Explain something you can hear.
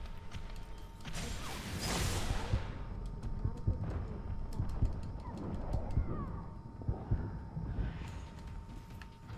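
Heavy blows thud and clash in a fierce fight with a monster.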